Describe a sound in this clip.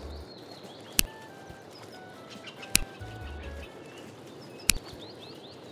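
A pickaxe strikes rock with sharp knocks.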